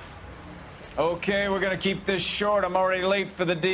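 A man speaks briskly and clearly, close by.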